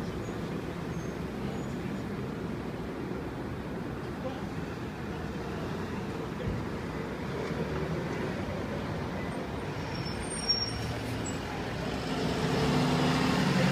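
Traffic hums steadily on a street outdoors.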